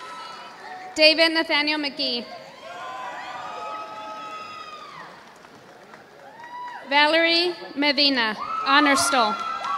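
A woman speaks loudly over a loudspeaker in a large echoing hall.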